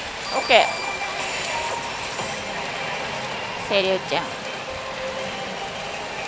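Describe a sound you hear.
A pachinko machine plays electronic sound effects and music through its loudspeaker, with sudden swooping chimes.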